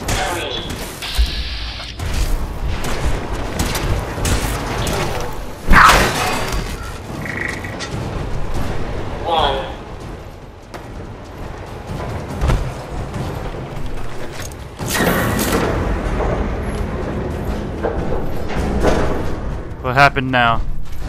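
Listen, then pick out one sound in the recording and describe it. Heavy metal footsteps clank and thud on hard floors.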